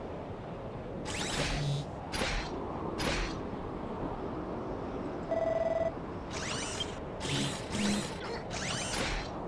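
Weapons swing with quick whooshing clangs.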